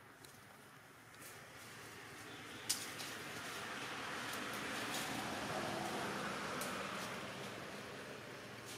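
Leaves rustle as a monkey moves through the branches.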